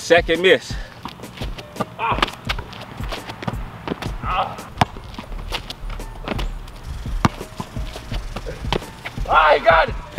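A basketball bounces on asphalt.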